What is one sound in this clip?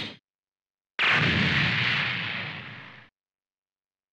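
A loud explosion booms and rumbles away.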